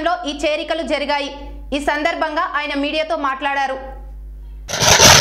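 A young woman reads out calmly through a microphone.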